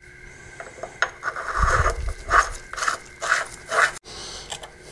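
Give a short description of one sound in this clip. Metal parts click and scrape as they are fitted together.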